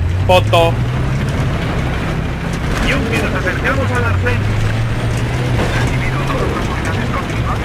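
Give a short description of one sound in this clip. A tank engine rumbles steadily close by.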